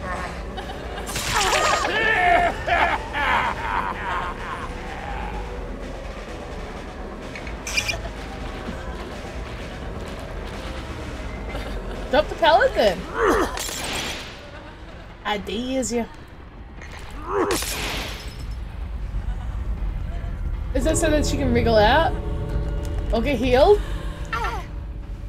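A woman talks with animation into a microphone, in short bursts.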